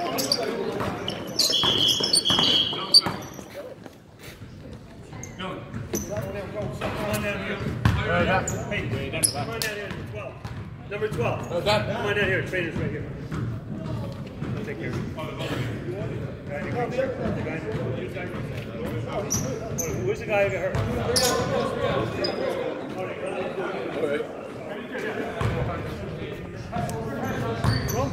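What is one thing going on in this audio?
Young men call out to each other in a large echoing gym.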